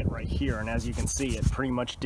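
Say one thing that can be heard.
A hand rubs and crinkles burnt leather.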